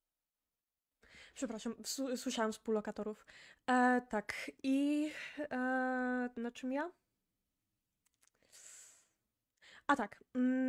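A young woman talks with animation into a microphone, close up.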